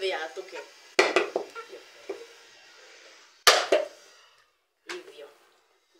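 A hard object knocks sharply on a coconut shell.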